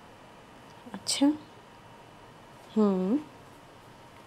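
A young woman speaks quietly on a phone.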